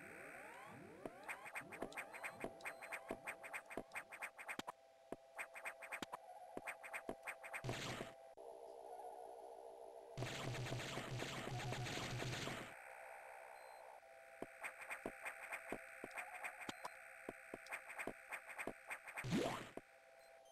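Quick metallic footsteps patter as a character runs.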